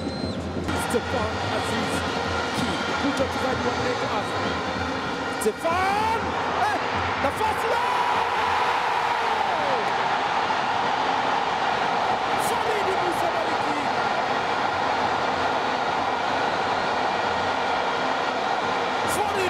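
A large stadium crowd cheers and roars, swelling loudly after a goal.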